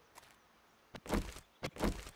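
A machete swishes through the air.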